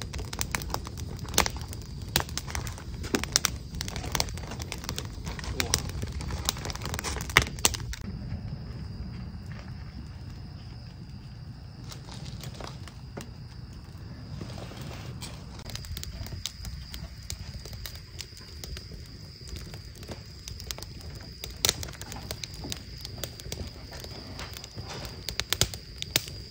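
Small objects tap and clink close by.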